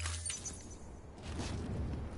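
Footsteps tread on hard ground.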